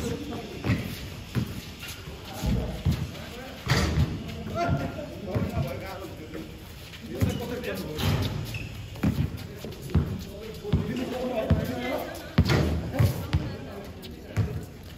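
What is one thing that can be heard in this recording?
Sneakers scuff and squeak on concrete.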